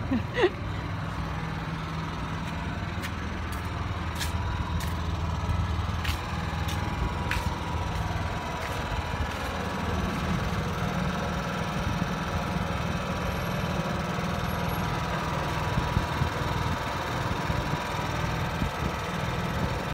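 A generator hums steadily nearby.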